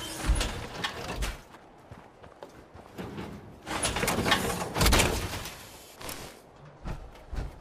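Heavy metal footsteps clank and thud on the ground.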